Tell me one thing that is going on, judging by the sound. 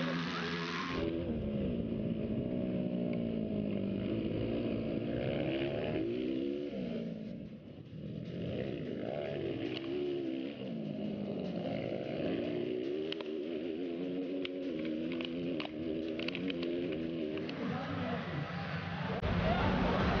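A motorcycle engine revs up and down loudly, close by.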